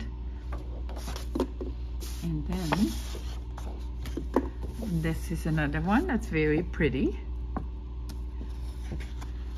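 Sheets of stiff paper rustle and flap as they are handled.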